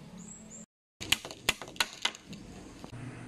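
A hammer knocks on bamboo.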